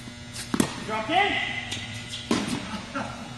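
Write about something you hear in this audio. A tennis racket hits a ball with a sharp pop in a large echoing hall.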